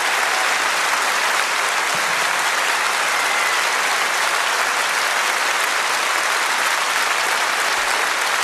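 A large crowd applauds and cheers loudly in a big hall.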